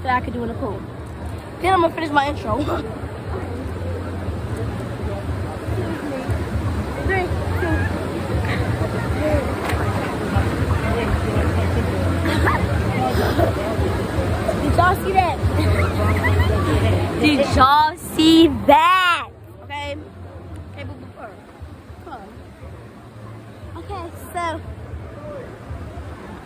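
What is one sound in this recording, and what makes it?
A crowd chatters and splashes in a pool outdoors.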